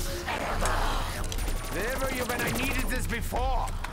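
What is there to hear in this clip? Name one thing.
A gun fires a burst of shots.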